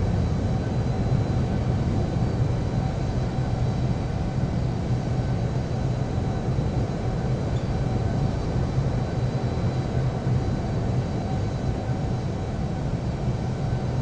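A jet engine hums and whines steadily as an airliner taxis.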